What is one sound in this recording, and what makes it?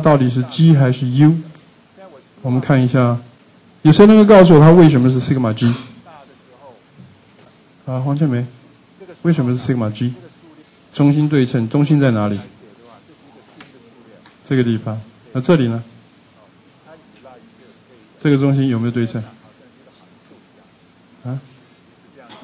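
A middle-aged man lectures calmly through a microphone, in short phrases with pauses.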